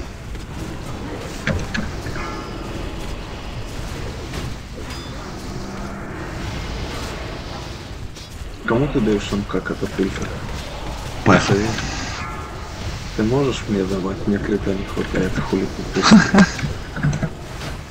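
Magic spells crackle and whoosh during a fantasy battle.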